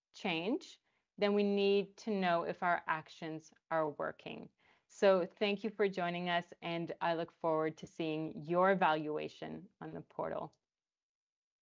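A woman speaks warmly and clearly into a microphone.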